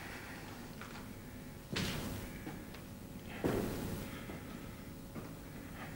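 Footsteps tap on a hard floor in an echoing room.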